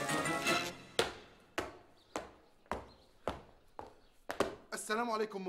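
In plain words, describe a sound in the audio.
Boots stamp hard on the floor in a marching rhythm.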